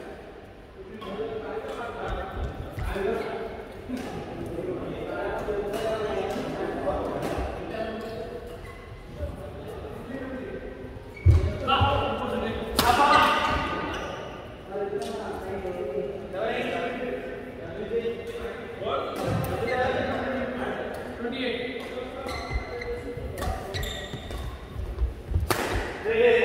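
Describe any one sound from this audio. Rackets pop sharply against shuttlecocks in a large echoing hall.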